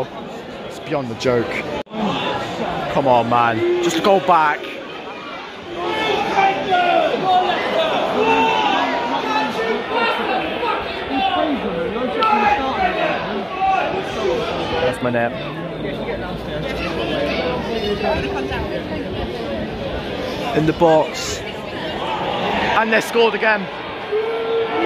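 Nearby fans shout and cheer close by.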